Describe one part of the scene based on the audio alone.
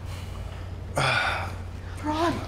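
An elderly man calls out loudly nearby.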